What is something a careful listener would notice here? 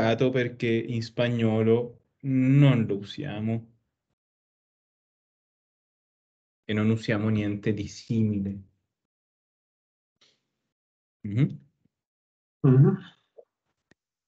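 A man speaks calmly, heard through an online call, in short phrases with pauses.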